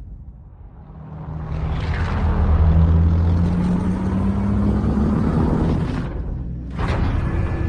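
Helicopter engines roar as they pass close by.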